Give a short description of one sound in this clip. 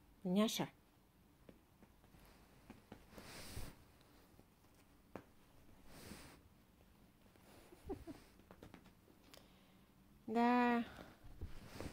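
A cat meows loudly nearby.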